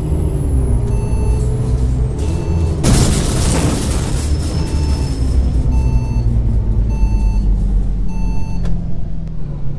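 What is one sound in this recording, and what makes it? A turn signal ticks in even beeps.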